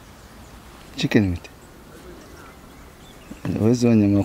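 A man answers calmly into a microphone, close by.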